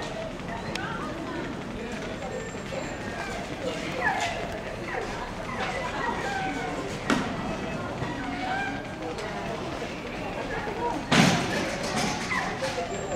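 A woman calls out commands to a dog with animation in a large echoing hall.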